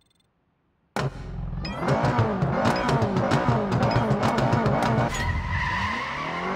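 A sports car engine roars and revs hard at the start of a race.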